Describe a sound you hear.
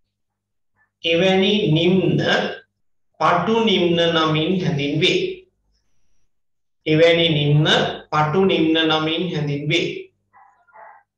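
A man speaks calmly and clearly close to a microphone, in short bursts with pauses.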